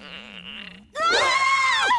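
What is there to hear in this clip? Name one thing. A creature makes a high, wavering cry.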